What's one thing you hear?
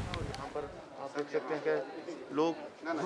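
A man speaks close by, slightly muffled.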